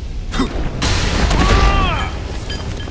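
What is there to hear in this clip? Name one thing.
Heavy punches land with dull thuds.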